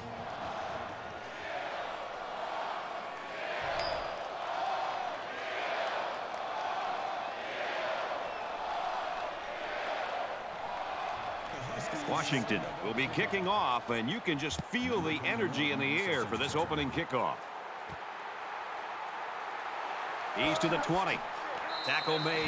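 A large crowd roars and cheers steadily in a stadium.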